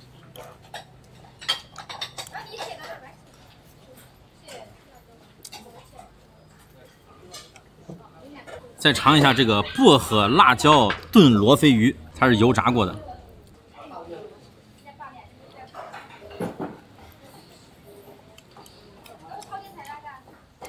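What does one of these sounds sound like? A man eats and chews food close by.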